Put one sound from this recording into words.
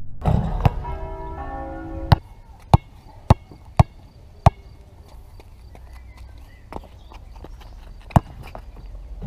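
A basketball bounces sharply on a hard outdoor court.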